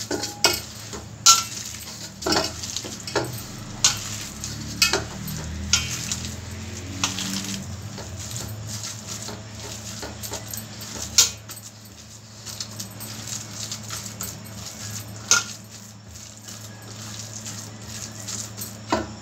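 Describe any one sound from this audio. Fingers knock against a metal bowl with sharp clinks.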